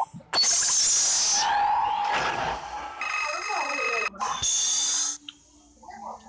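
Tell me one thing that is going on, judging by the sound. Loud electronic game chimes and whooshes play.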